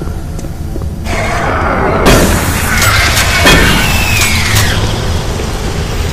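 A shotgun fires with loud booms.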